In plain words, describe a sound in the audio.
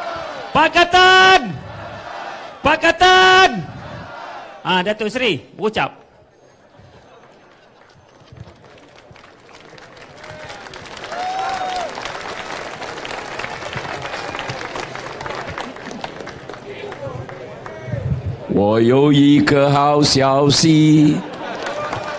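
A man shouts with animation through a loudspeaker outdoors.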